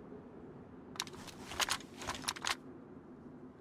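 Gun parts click and rattle as a rifle is handled.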